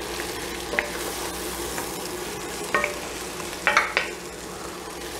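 A wooden spoon scrapes and knocks against a pot as vegetables are stirred.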